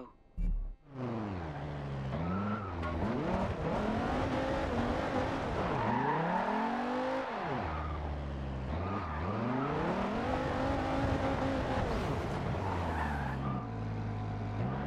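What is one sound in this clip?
A sports car engine revs hard and changes pitch as it accelerates and slows.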